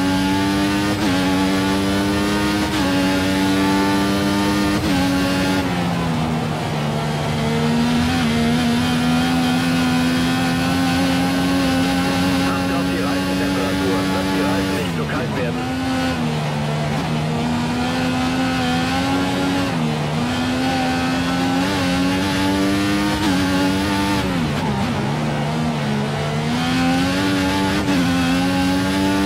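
A racing car engine screams at high revs, shifting gears up and down through bends.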